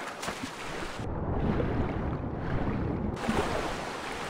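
Water rumbles, muffled, from underwater.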